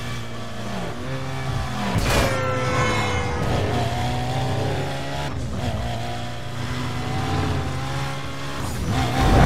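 A racing car engine roars at high speed, revving up and down as it shifts gears.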